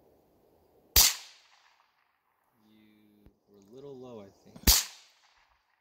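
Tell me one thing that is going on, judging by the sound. A rifle fires a single loud shot outdoors, echoing briefly.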